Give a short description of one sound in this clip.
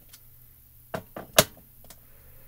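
A stiff card taps and slides on a plastic mat.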